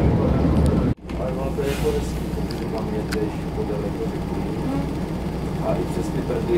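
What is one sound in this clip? A diesel train engine idles with a low hum close by.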